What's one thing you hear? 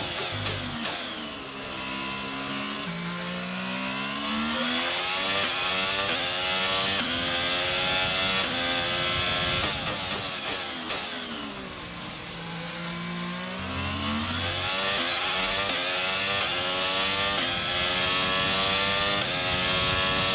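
A racing car engine screams as it speeds up and shifts through gears, then drops in pitch when braking.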